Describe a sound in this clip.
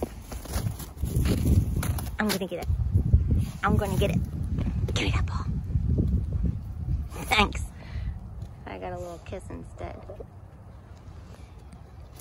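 A dog's paws dig and crunch in snow.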